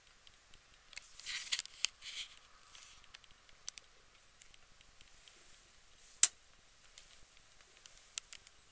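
Electric sparks crackle and snap in short bursts.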